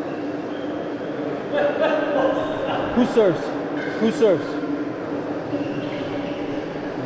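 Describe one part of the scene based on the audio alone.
Young men talk briefly to each other in an echoing hall.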